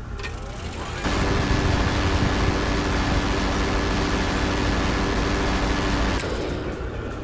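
A rotary autocannon fires rapid bursts.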